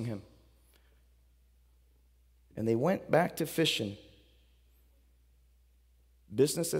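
A man speaks calmly through a microphone in a large echoing room, with pauses between phrases.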